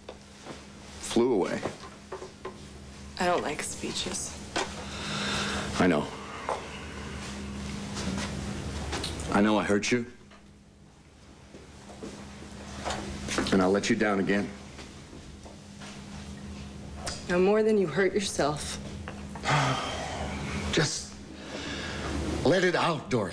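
A young woman speaks, close by.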